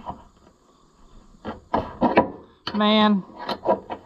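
A metal wrench clinks against a bolt.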